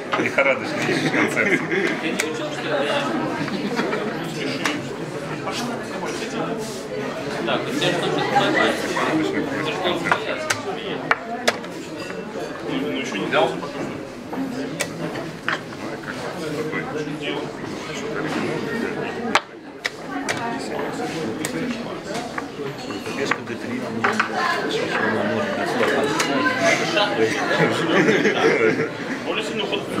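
Many men and women talk at once in a lively murmur indoors.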